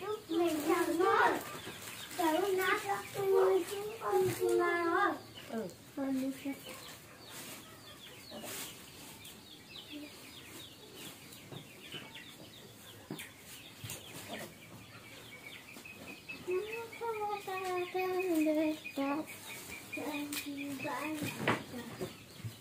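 A young child talks in a high voice nearby.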